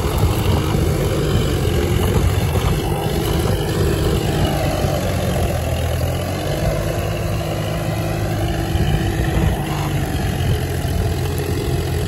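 A harrow scrapes and churns through dry soil.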